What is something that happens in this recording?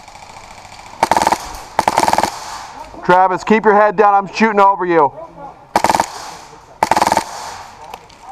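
A paintball marker fires rapid pops close by.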